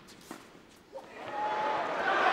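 A crowd bursts into cheers and applause.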